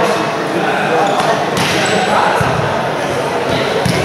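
A volleyball thumps as a player serves it.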